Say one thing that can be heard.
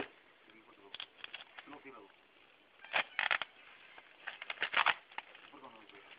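Plastic wrapping rustles and crinkles as gloved hands handle it.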